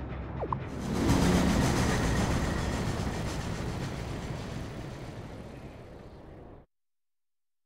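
An airship whooshes past and fades away.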